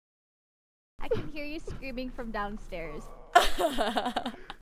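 A young woman laughs loudly through a microphone.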